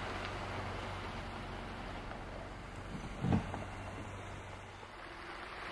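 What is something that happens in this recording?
A car engine hums as the car drives away.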